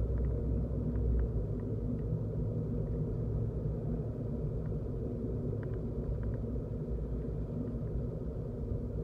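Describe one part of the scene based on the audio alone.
A car engine hums steadily as it drives along a street.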